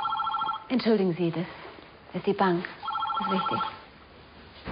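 A woman speaks calmly nearby.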